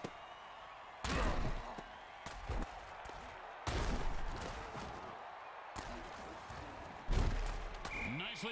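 Armoured players crash together in heavy tackles with loud thuds.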